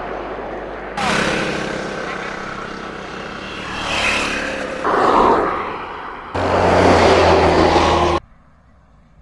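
Small motorcycles ride past close by on asphalt.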